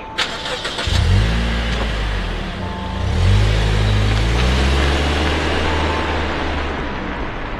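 A car engine starts and revs.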